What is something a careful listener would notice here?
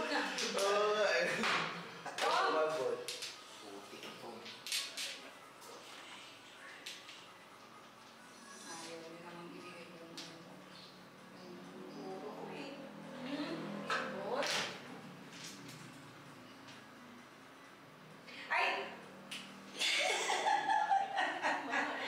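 Mahjong tiles click and clack on a table.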